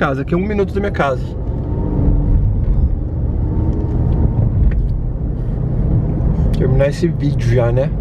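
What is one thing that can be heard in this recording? A car engine hums steadily with road noise from the tyres.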